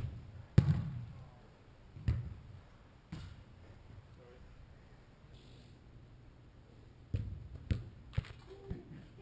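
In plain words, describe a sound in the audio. A football thuds as it is kicked and bounces.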